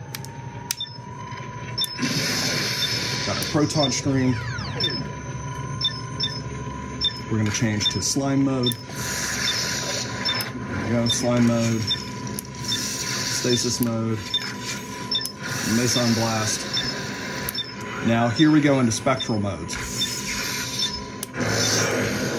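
Plastic switches click sharply.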